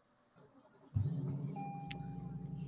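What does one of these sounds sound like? A car's engine starts with a low hum.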